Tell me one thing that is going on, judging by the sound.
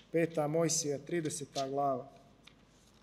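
A man speaks loudly into a microphone in an echoing hall.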